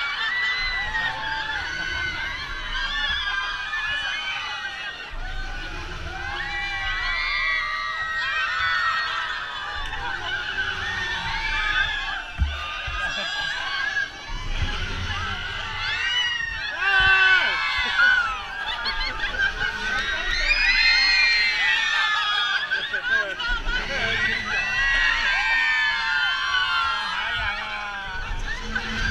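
A group of riders scream and shout with excitement close by.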